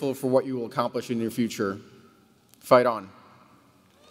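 A man speaks through a microphone in a large hall.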